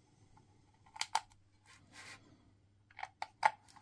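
A small metal tool clicks and scrapes against a battery casing.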